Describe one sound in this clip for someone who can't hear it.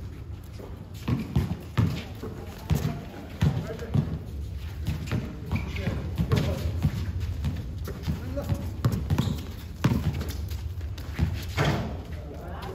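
A basketball bounces on hard ground outdoors.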